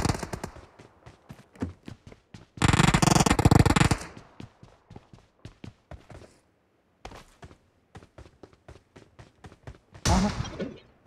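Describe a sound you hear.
Quick footsteps run across hard ground.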